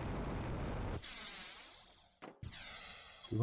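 A metal door slides open with a whoosh.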